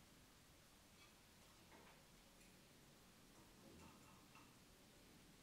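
A spoon clinks against a small metal pot.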